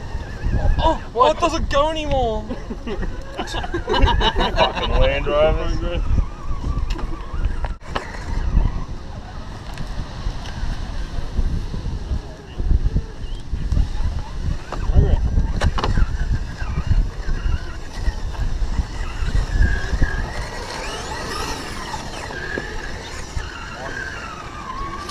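Plastic tyres scrape and crunch on rock.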